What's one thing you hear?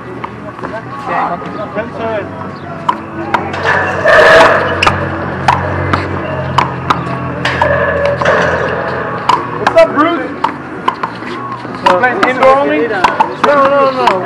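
A small rubber ball smacks sharply against a wall and the hard court again and again.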